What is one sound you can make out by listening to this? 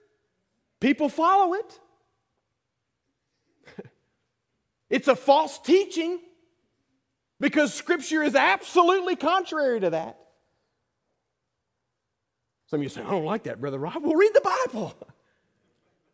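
A man preaches with animation through a microphone, in bursts with pauses between.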